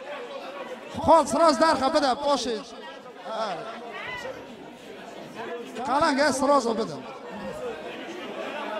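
A man sings loudly through a microphone and loudspeakers in an echoing room.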